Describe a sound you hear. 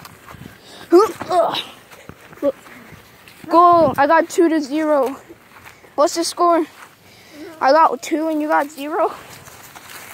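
A child talks close by.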